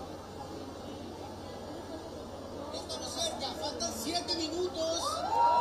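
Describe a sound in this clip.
A large crowd chatters and cheers outdoors.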